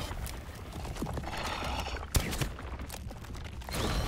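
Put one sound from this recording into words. Gravel shifts and trickles as a creature burrows into it.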